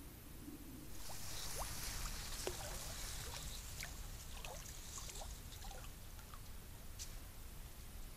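Water splashes and ripples as an animal moves through reeds.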